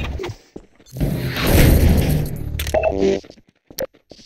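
A heavy metal object crashes and clatters loudly.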